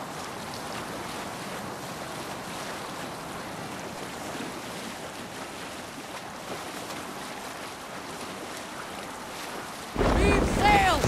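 Waves wash and splash around a wooden boat.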